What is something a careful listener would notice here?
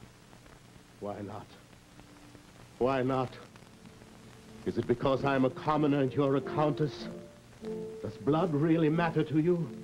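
A man speaks in a low, earnest voice, close by.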